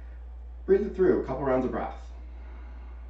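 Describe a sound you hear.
A man speaks calmly and softly into a nearby microphone.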